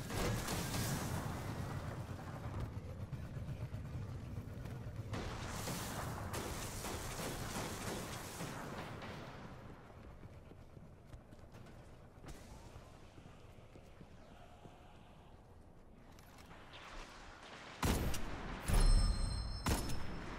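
Gunshots crack in loud, sharp bursts.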